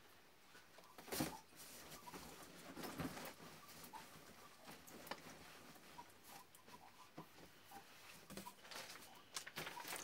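Soft cloth and towels rustle as they are packed into a cardboard box.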